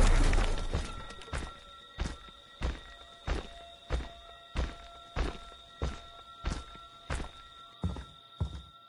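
Heavy footsteps thud slowly and steadily on the ground.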